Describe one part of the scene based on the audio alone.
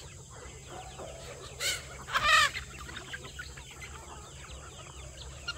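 A large flock of chickens clucks and chirps softly outdoors.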